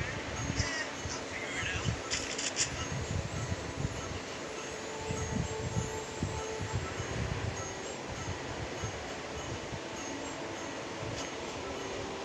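Wind rushes steadily past a skydiver falling through the air.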